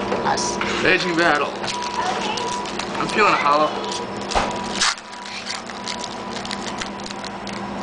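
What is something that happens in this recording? A foil wrapper crinkles and tears as it is ripped open.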